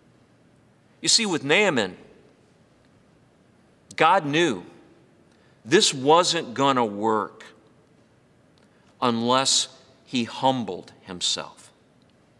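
A middle-aged man speaks calmly and close to a microphone, in short phrases with pauses.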